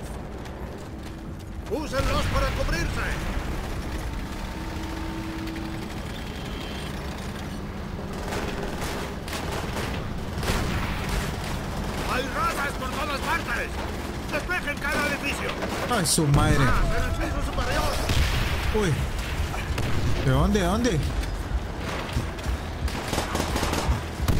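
Gunfire and explosions rumble through a battle.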